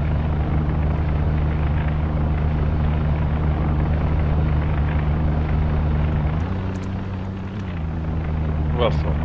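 A propeller plane's engines drone steadily, then shift in pitch.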